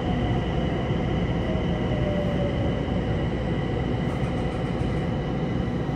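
A train car rumbles and rattles steadily along the tracks.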